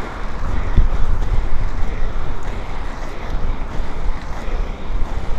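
Inline skate wheels roll and rumble over pavement.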